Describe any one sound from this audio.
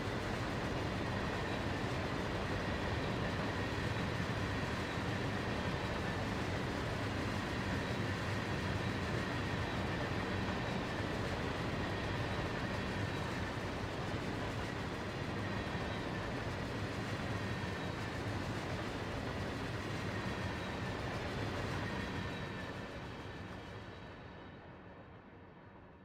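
A freight train rumbles past on the rails and slowly fades away.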